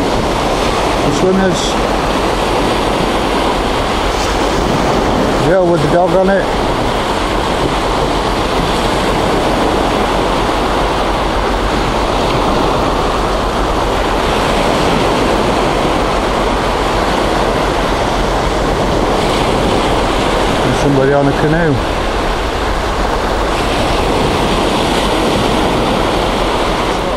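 Small waves wash steadily onto a sandy shore.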